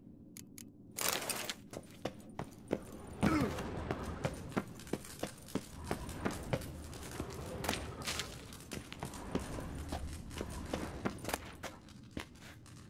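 Footsteps fall steadily on a hard stone floor.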